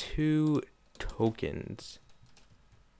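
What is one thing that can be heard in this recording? A game plays short electronic chimes.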